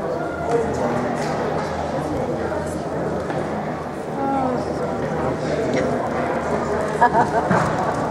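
A group of young people chatter in a large echoing gym.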